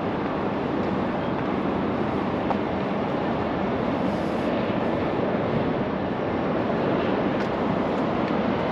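Wind blows steadily and roughly across the microphone outdoors.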